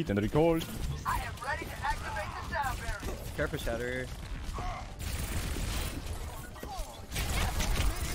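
Twin pistols fire in quick rapid bursts.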